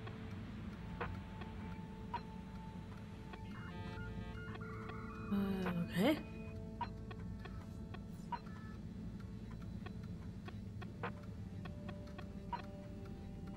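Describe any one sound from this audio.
Short electronic menu blips sound as options are selected.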